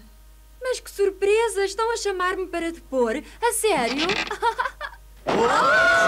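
A young girl speaks in a surprised, questioning voice.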